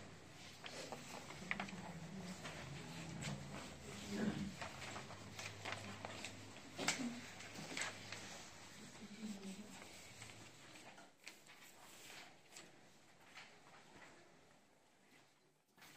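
Pens scratch softly on paper.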